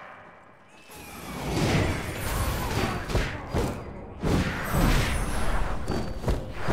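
Blades clash and strike in a noisy fight.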